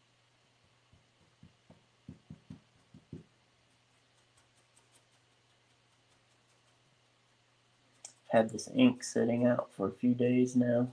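A pen scratches and taps on paper.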